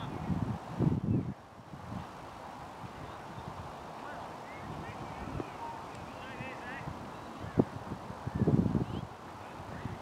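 Wind gusts across an open field.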